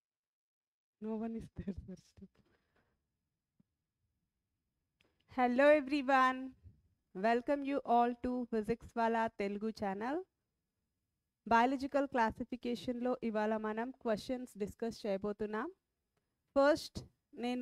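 A woman speaks with animation into a headset microphone.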